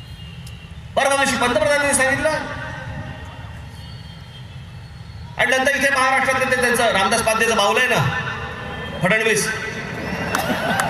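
A man speaks forcefully into a microphone, heard through loudspeakers outdoors with echo.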